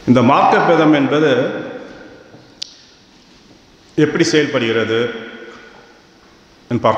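A middle-aged man speaks calmly into a microphone, with pauses, in a reverberant hall.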